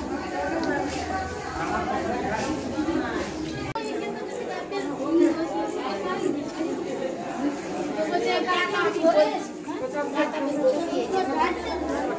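A crowd of women chatter close by, several voices overlapping.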